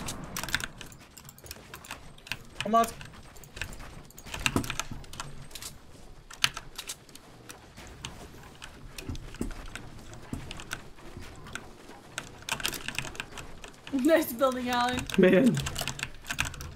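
Game building sounds click and clatter rapidly.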